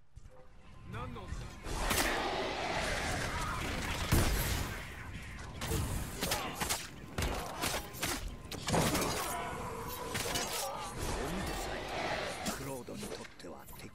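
Swords clash and strike again and again in a fight.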